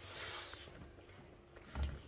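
A man slurps noodles.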